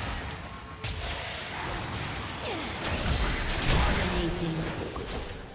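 Magic spells burst and whoosh during a fantasy battle.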